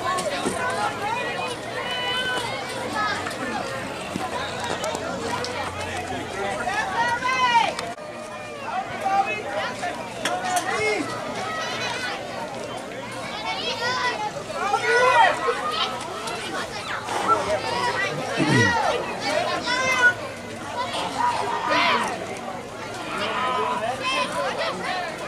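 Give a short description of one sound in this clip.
A crowd of spectators nearby chatters and calls out outdoors.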